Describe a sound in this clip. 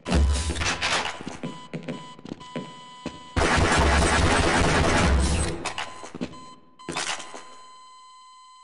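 Gunshots fire in rapid bursts and echo.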